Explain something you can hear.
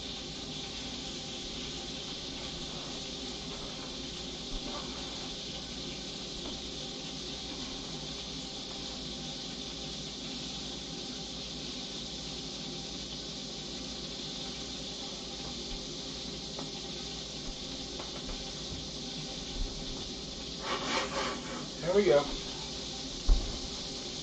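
Butter sizzles and bubbles steadily in a pot.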